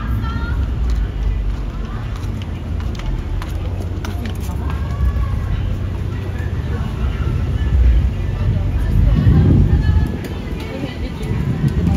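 Young women chat in passing nearby.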